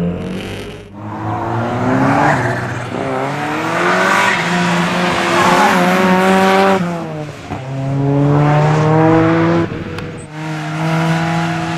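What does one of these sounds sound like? A car engine revs hard and whines as the car speeds around a track outdoors.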